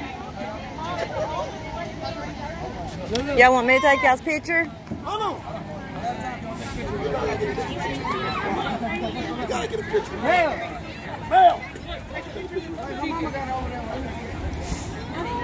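A crowd of adults and children chatter nearby, outdoors.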